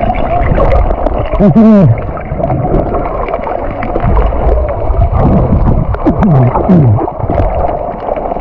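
Swimmers kick and splash, with bursts of bubbles.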